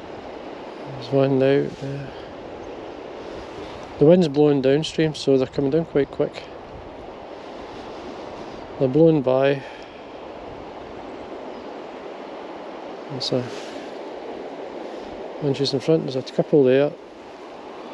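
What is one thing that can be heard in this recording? A man speaks calmly in short bursts close to the microphone.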